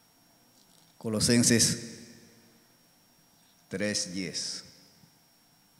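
A man speaks into a microphone in short bursts, heard through a loudspeaker in a large room.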